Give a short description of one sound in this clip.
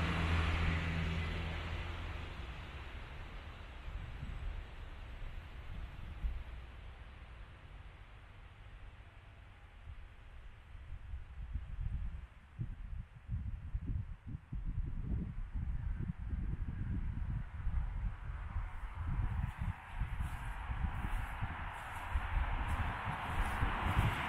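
Wind blows outdoors, rumbling and gusting.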